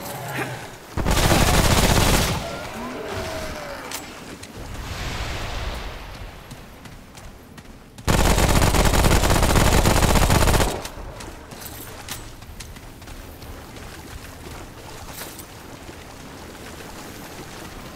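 Footsteps tread over rubble and dry grass.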